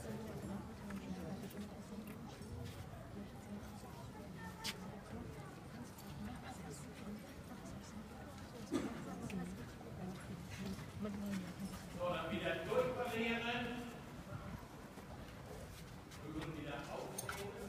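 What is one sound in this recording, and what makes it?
Horses' hooves thud softly on soft ground in a large hall.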